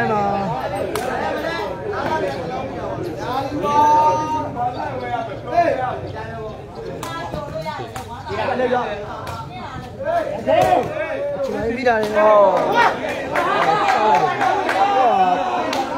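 A ball is kicked with sharp thuds.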